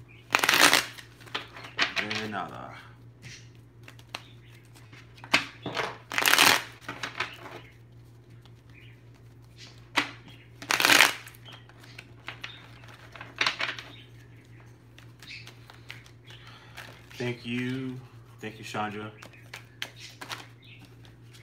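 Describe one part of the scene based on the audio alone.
Cards or paper rustle and tap on a table.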